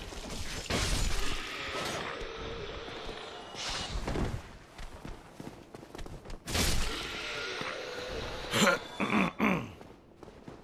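Metal weapons clash and strike in bursts.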